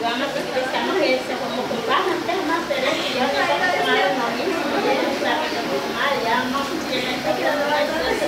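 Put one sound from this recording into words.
A woman speaks with animation.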